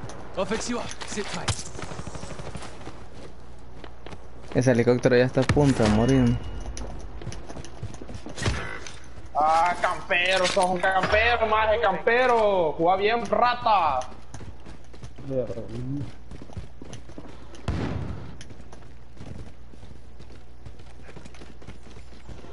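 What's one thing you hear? Gunshots crack in a video game.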